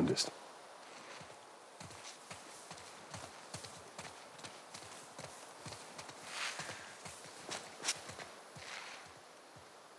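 Footsteps crunch through grass and over stone at a steady walking pace.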